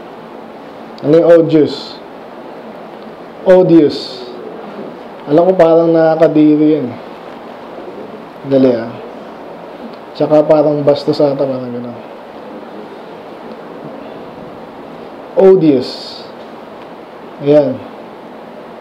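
A man speaks with emphasis into a microphone, in short bursts with pauses.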